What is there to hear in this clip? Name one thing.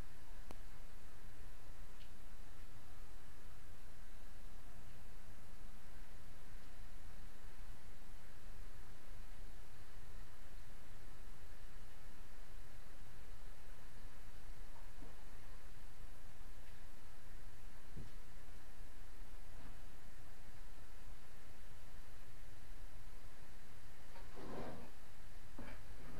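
A trowel scrapes softly against a wall.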